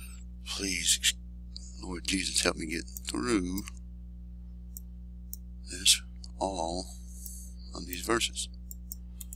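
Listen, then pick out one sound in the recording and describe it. A young man speaks close to a microphone, calmly and haltingly.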